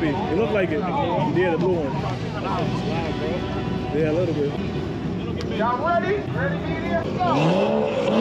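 Young men talk nearby outdoors.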